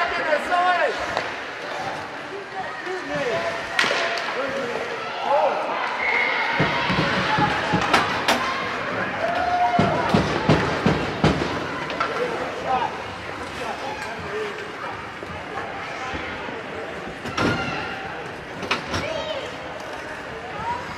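Children and adult spectators shout and cheer in an echoing rink.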